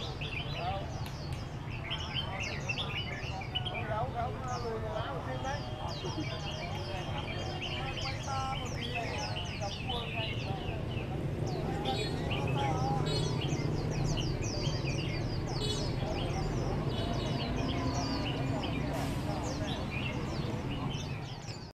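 Many caged birds chirp and trill loudly.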